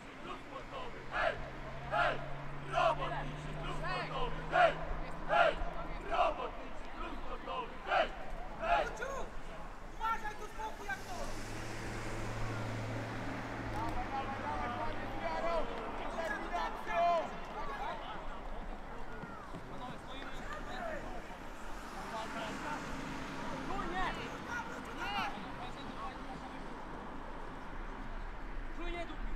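Young men shout and call out to each other across an open outdoor field.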